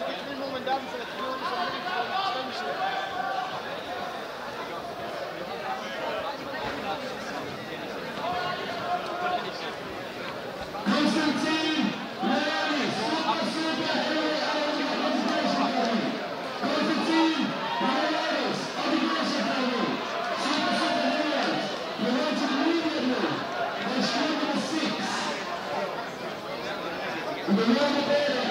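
A crowd of spectators chatters and murmurs in a large echoing hall.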